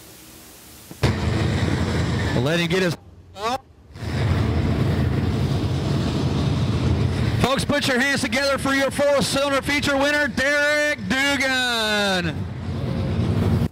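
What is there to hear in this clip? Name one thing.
A man speaks loudly over a loudspeaker.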